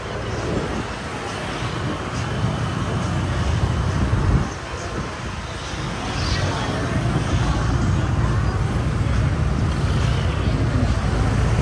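A steady murmur of people's voices fills the street outdoors.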